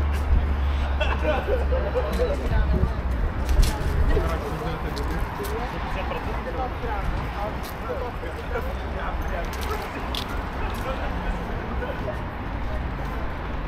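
A busy city street hums with passing traffic outdoors.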